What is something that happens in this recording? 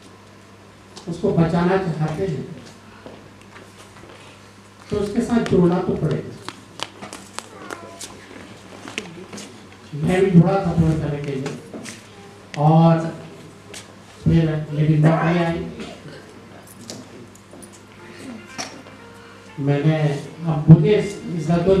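A man speaks through a microphone in bursts, with pauses between phrases, heard over loudspeakers in a large hall.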